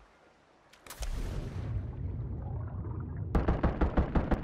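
Water splashes and rushes as a body plunges under the surface.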